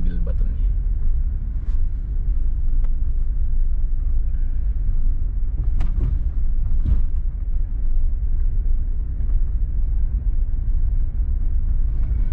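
A car engine hums low and steady as it drives slowly down a narrow street.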